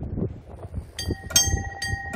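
A railway crossing alarm starts ringing with a steady, repeating bell.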